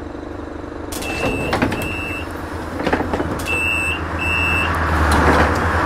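A bus door warning chime beeps several times.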